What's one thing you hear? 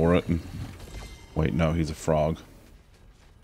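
A man speaks casually into a close microphone.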